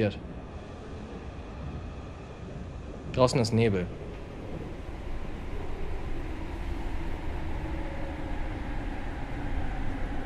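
A train rumbles steadily as it rolls along.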